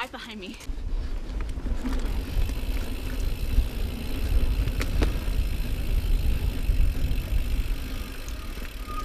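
Wind rumbles past a moving bicycle.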